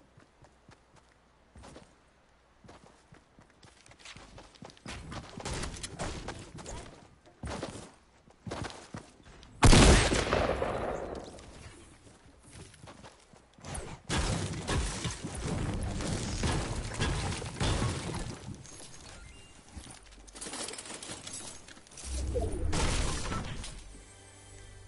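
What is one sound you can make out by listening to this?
Footsteps patter quickly on grass and floorboards.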